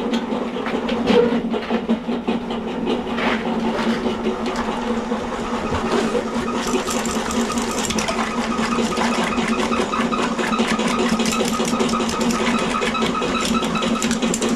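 A drain cleaning machine hums steadily as its cable spins.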